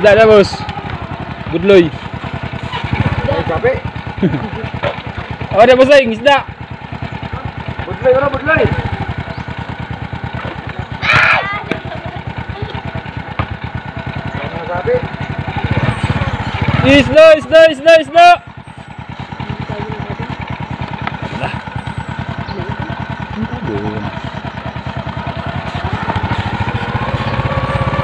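A motorcycle engine runs with a steady low chugging close by.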